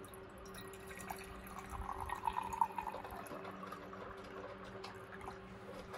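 Water pours into a metal pot.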